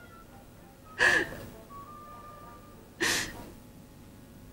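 A young woman sobs loudly, close by.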